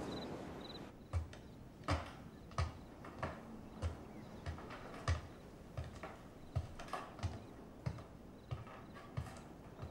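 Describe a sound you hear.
Footsteps thud on a staircase indoors.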